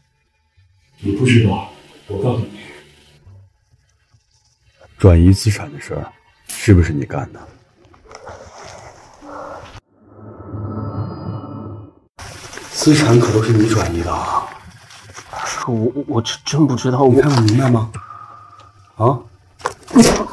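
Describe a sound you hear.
A young man speaks tensely, close by.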